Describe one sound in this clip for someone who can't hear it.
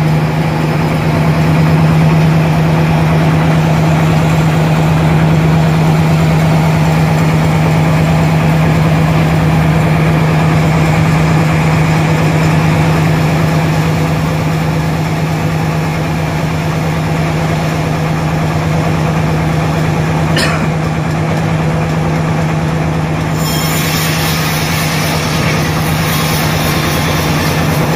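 A motor drones steadily close by.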